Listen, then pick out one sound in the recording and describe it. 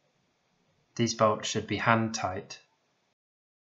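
A man speaks briefly and calmly up close.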